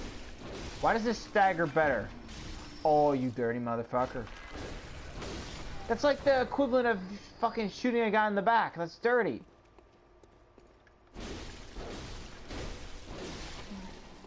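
A blade slashes and strikes flesh with wet thuds.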